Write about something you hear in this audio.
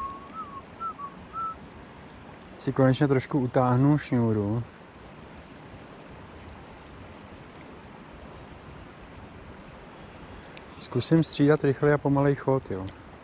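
A river flows gently nearby.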